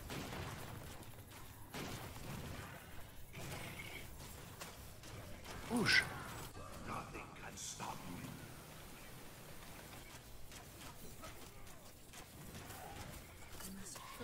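Magic bolts whoosh and zap in a game fight.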